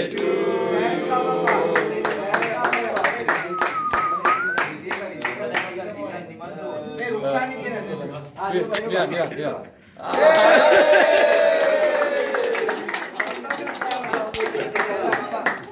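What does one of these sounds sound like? People clap their hands in a steady rhythm.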